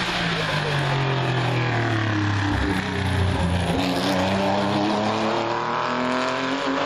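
A race car engine roars loudly close by, revving up and down through the gears.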